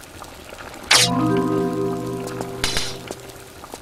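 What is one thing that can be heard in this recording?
A short ringing chime sounds as an item is picked up.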